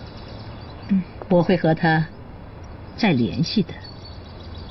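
An elderly woman speaks calmly.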